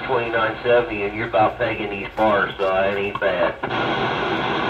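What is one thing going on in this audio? A man's voice comes through a radio loudspeaker, crackly and distorted.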